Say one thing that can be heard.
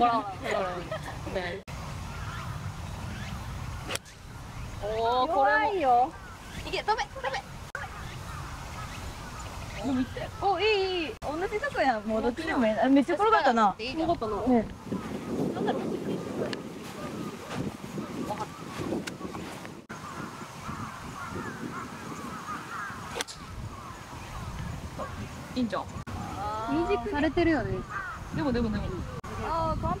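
Young women talk and exclaim nearby, outdoors.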